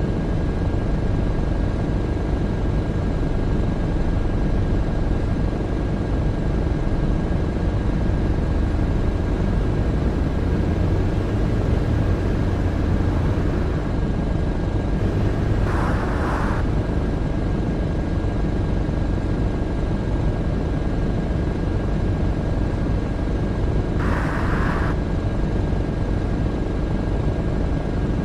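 A turn signal ticks steadily.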